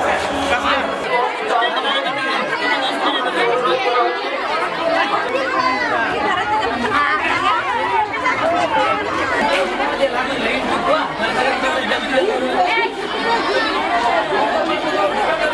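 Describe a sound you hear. A large crowd of children and adults chatters loudly outdoors.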